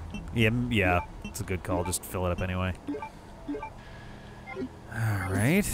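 Short electronic beeps chime as menu options are chosen.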